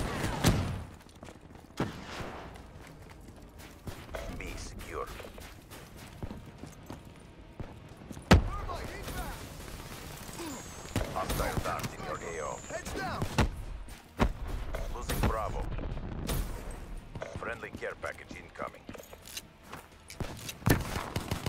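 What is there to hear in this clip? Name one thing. Gunshots fire in sharp bursts.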